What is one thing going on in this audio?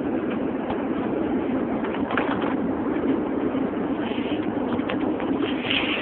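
A man talks nearby inside the car.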